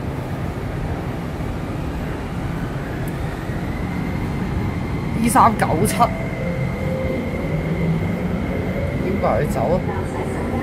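A train rumbles past with a steady low roar.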